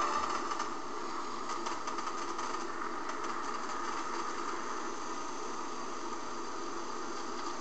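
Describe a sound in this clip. A spacecraft's engines roar steadily.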